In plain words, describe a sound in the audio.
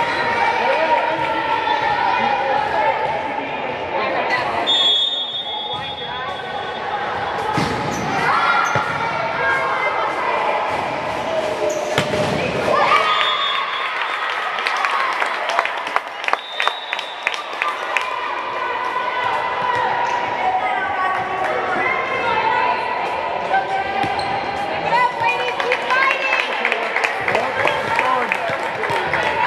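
Young women call out and shout to each other in a large echoing hall.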